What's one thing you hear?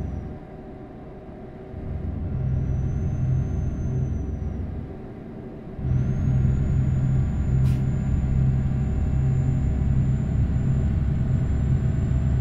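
A truck engine rumbles low and steady, rising and falling as it drives.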